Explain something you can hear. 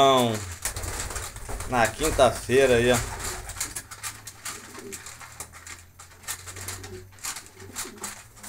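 Pigeons peck rapidly at grain on wood.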